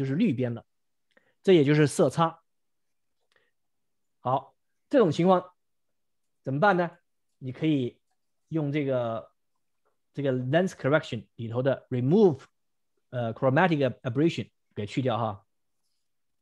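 A man talks calmly into a close microphone, in short phrases with pauses.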